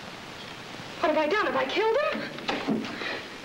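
A young woman cries out in alarm.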